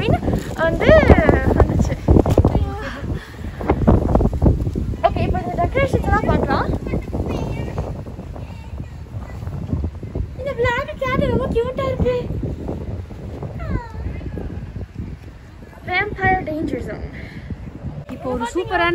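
Young women talk close by, speaking with animation.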